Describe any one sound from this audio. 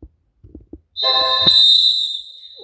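A video game chime rings out.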